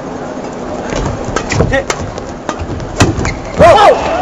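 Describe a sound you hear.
Rackets smack a shuttlecock back and forth in quick sharp hits.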